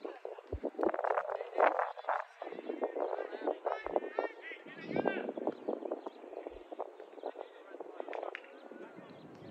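Young people shout and call to each other across an open field.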